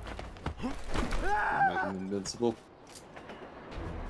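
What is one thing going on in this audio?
A heavy body thuds down.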